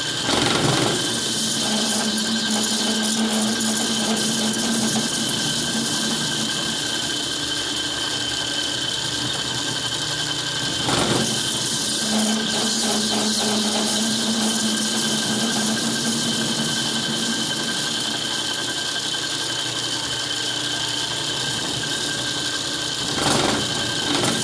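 A metal lathe hums steadily as its chuck spins.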